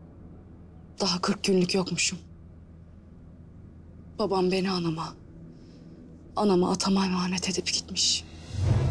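A woman speaks quietly and with feeling, in short phrases.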